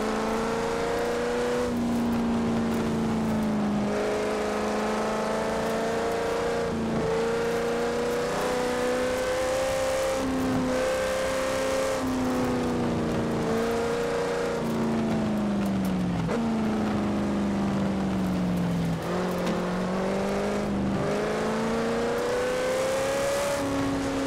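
Tyres crunch and rumble over gravel.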